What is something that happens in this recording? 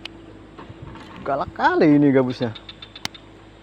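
A fishing line whizzes off a spinning reel during a cast.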